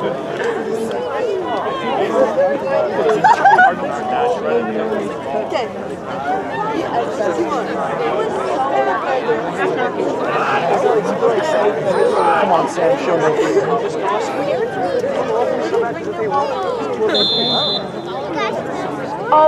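Many voices of men and women chatter and call out close by, outdoors.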